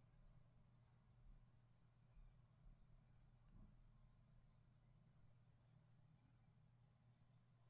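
A brush softly brushes against skin.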